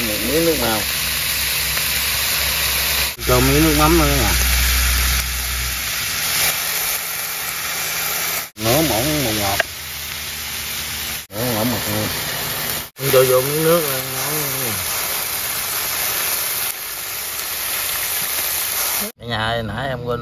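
Chicken pieces sizzle and crackle in hot oil.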